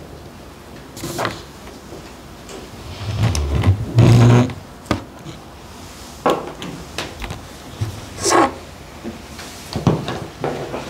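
Microphones thump and rattle as they are moved about on a table.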